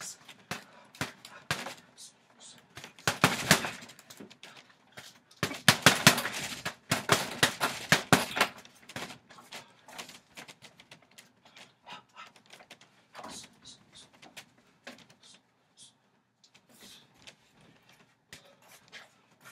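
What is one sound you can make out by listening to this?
Boxing gloves thump against a heavy punching bag.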